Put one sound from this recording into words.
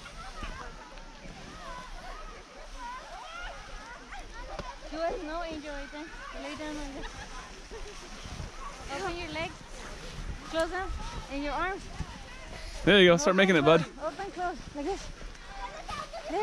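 A young child shouts and squeals excitedly outdoors.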